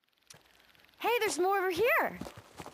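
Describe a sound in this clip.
A young woman calls out loudly nearby.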